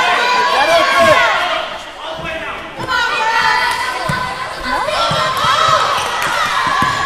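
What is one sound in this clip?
A basketball bounces on a wooden floor with dull thuds.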